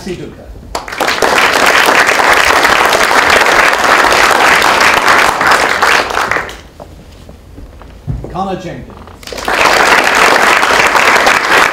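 A crowd applauds loudly in bursts.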